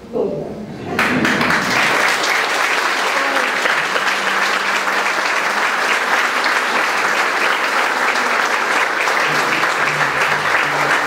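A crowd applauds loudly in an echoing hall.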